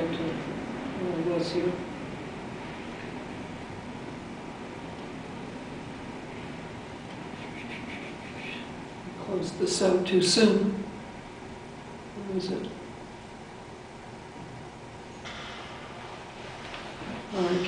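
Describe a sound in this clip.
An elderly woman speaks haltingly into a microphone.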